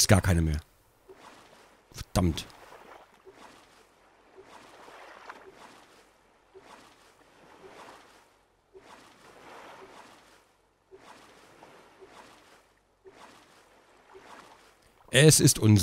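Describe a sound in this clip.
A paddle splashes through water in slow, regular strokes.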